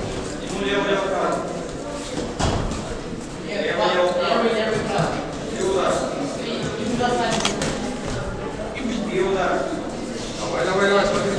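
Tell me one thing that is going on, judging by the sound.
Spectators shout encouragement in an echoing hall.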